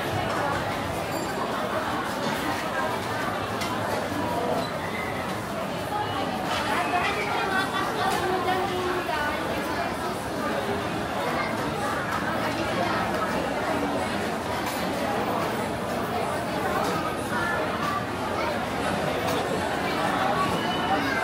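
A crowd of people chatters throughout, in a large echoing indoor hall.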